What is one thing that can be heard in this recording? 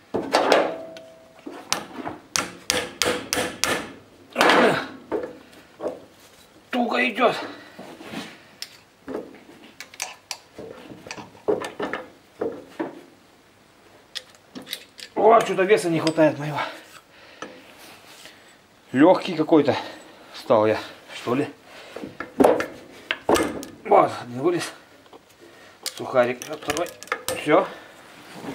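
Metal tools clink and tap against an engine part.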